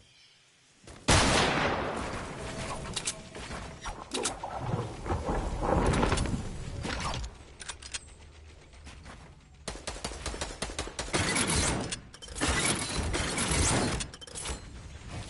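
Game building pieces clack rapidly into place.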